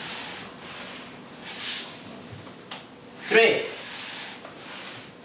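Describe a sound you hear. A man breathes out heavily and rhythmically, close by.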